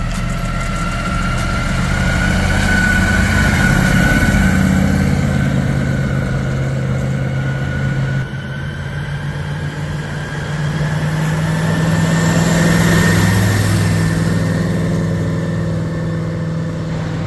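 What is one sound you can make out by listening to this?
A car engine rumbles deeply as it drives past and pulls away.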